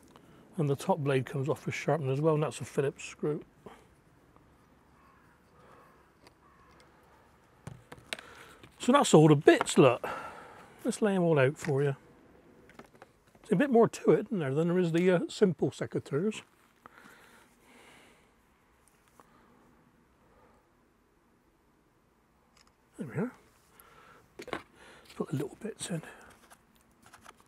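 A middle-aged man talks calmly, close to a microphone.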